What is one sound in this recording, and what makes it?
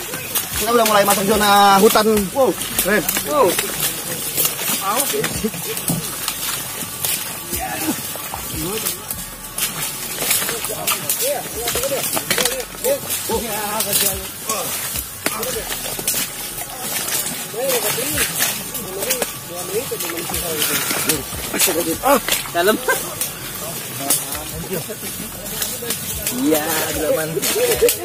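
Young men talk and call out to each other close by, outdoors.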